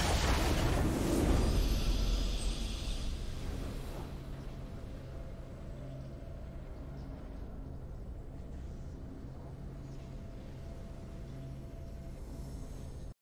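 A triumphant game fanfare bursts out loudly, then fades into soft, low music.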